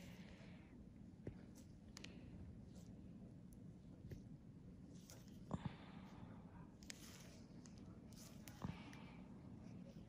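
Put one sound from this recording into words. A needle taps and scrapes softly against skin close up.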